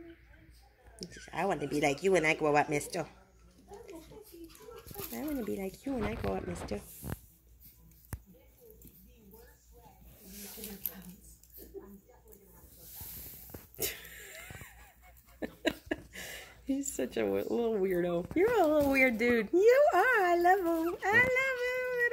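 Small puppies whine and yelp close by.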